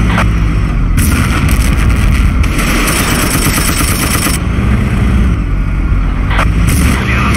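Tank tracks clatter and grind on the road.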